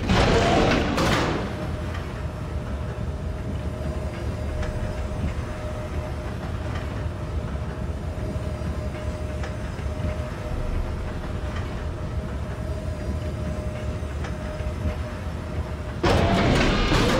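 A lift hums steadily as it travels.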